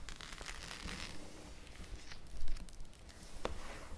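A hand pats and presses on a plastic page.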